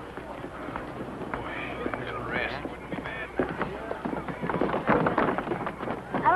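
Footsteps thump on wooden steps.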